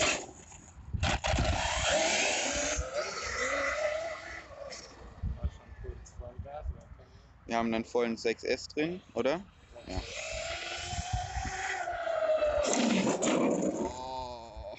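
A small electric motor whines and rises and falls in pitch.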